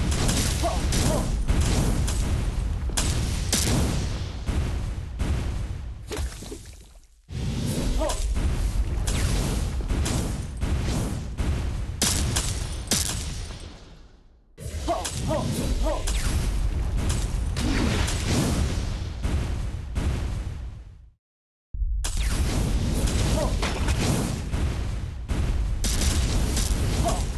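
Explosions boom and crackle in quick succession.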